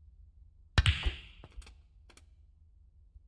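Snooker balls clack against each other.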